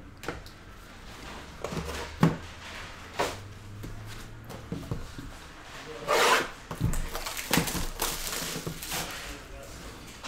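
A cardboard box slides and taps on a table.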